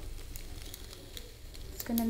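A spoon scrapes and stirs pasta in a metal pan.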